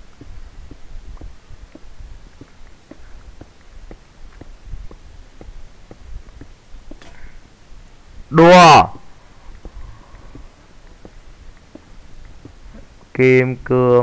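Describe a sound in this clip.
A pickaxe chips repeatedly at stone.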